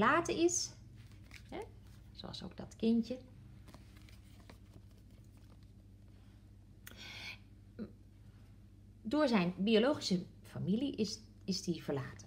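Playing cards rustle and tap softly as a hand handles them.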